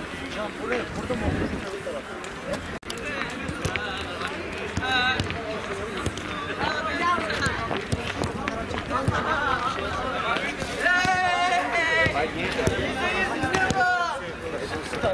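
Several young men talk and call out outdoors, close by.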